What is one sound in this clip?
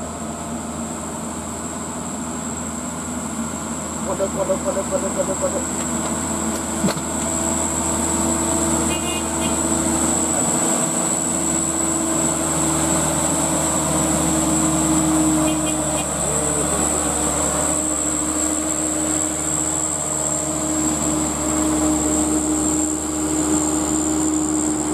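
A loaded diesel light dump truck labours up a hill, its engine droning under load.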